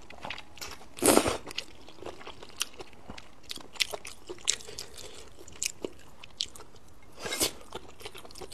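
A woman slurps noodles loudly, close to the microphone.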